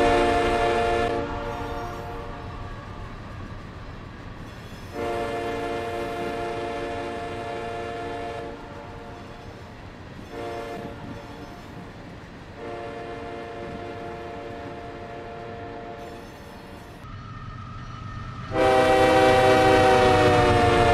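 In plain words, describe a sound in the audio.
A train horn blows in long, loud blasts.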